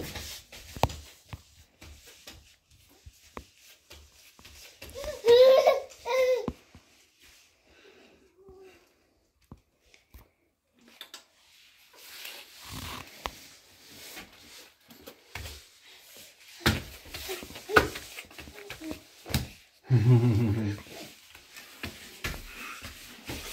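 Small hands pat softly on a foam mat.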